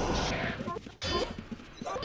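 Fighting creatures clash with sharp hits.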